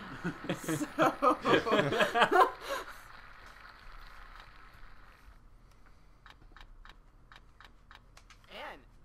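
A spinning prize wheel ticks rapidly, then slows down.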